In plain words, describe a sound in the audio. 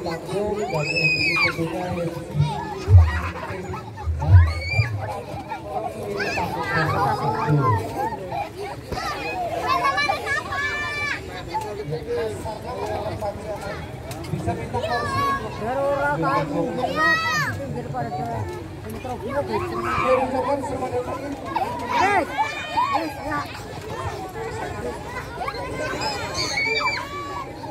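Children shout and squeal excitedly close by.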